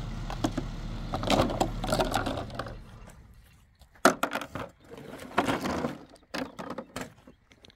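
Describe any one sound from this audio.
Items clatter and rustle as a woman handles them close by.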